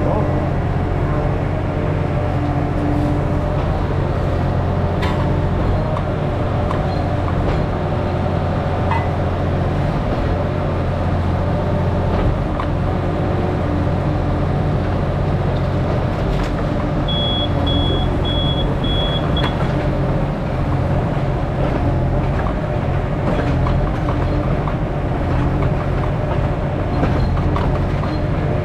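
Hydraulics whine as an excavator arm moves.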